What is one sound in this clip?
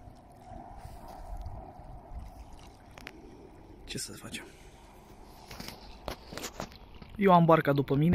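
Small waves ripple softly across open water.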